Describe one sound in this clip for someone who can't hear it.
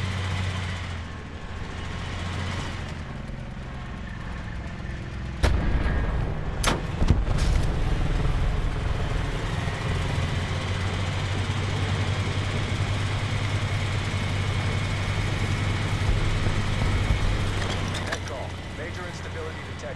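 A heavy tank engine rumbles low and steady, growing louder as the tank drives off.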